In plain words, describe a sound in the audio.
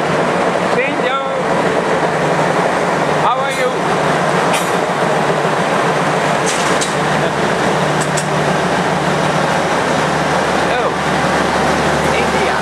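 A train rolls along the rails with a loud rushing clatter.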